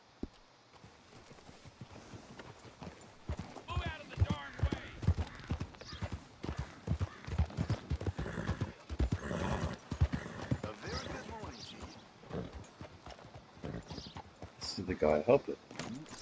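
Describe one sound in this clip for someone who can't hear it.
A horse's hooves thud steadily on a dirt road.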